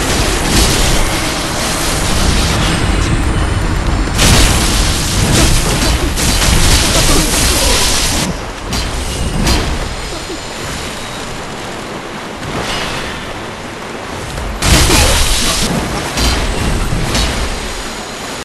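Water splashes heavily underfoot.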